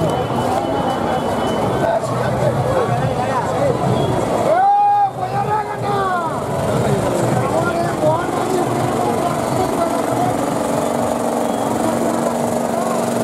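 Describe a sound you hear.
A large crowd chatters and calls out loudly outdoors.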